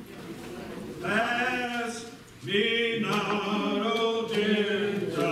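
A man sings loudly through a microphone in an echoing hall.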